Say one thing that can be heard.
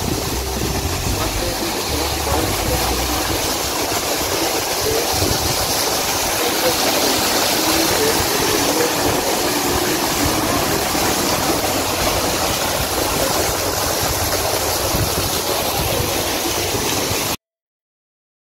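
Water splashes steadily down a small waterfall.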